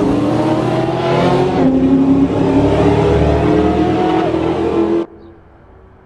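A sports car engine roars loudly as it accelerates and shifts gears.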